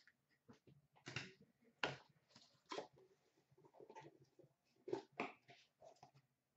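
Card packs rustle and knock as a hand rummages in a plastic basket.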